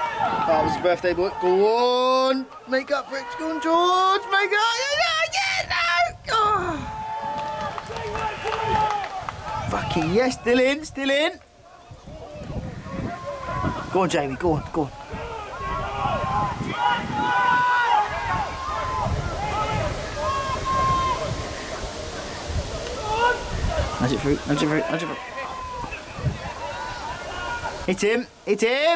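Spectators shout and cheer close by, outdoors.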